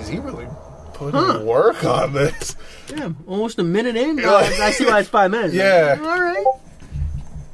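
A young man talks excitedly nearby.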